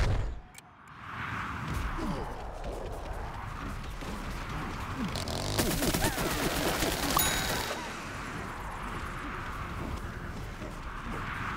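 Video game gunfire and explosions pop in bursts.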